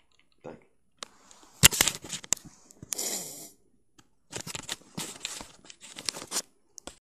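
A phone rubs and knocks against clothing as it is handled.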